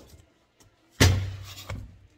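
A small box knocks onto a hard table.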